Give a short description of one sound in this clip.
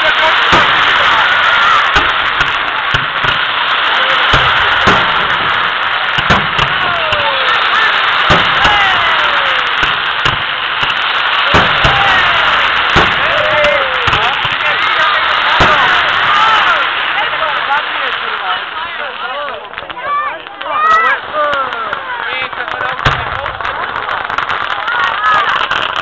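Firework sparks crackle and fizz steadily.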